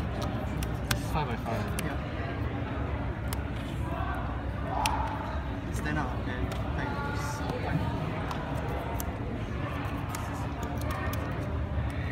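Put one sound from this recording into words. Playing cards tap and slide on a table mat.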